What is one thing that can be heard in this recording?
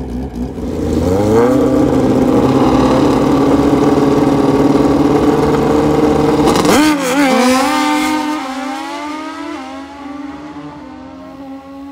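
A motorcycle engine roars as it launches and fades away.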